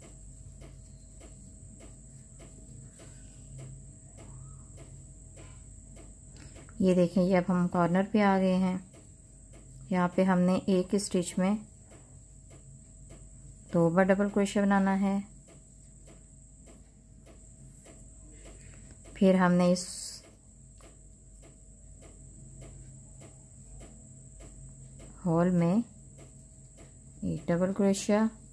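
A crochet hook softly clicks and rustles through yarn.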